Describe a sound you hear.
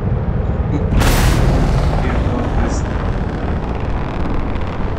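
Spaceship thrusters roar suddenly in a loud burst.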